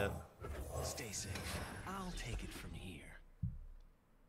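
A young man talks casually and close into a microphone.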